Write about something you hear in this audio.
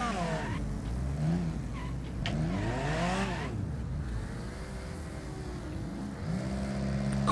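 A car engine revs up and down as gears shift.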